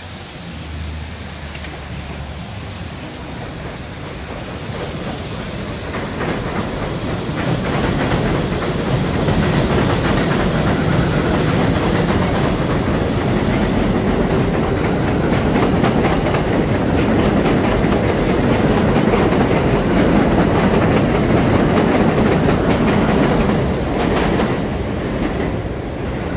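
Cars drive past on a busy street outdoors.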